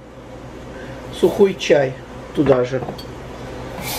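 A ceramic plate clinks down.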